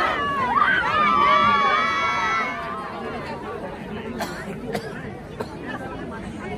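A crowd of children chatters and calls out excitedly outdoors.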